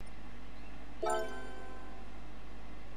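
A game menu chime rings out briefly.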